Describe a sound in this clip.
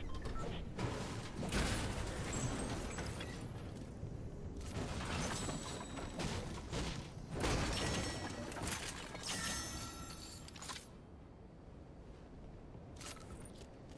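Game sound effects chime and clatter as items are picked up.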